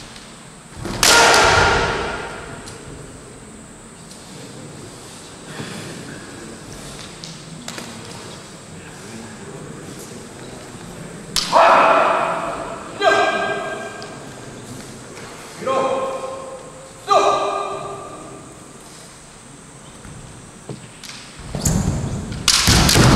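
Kendo fencers shout loudly in a large echoing hall.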